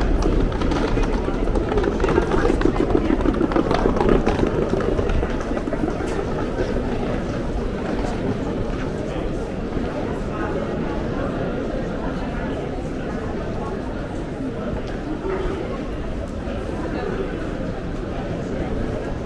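Footsteps tap on paving stones nearby.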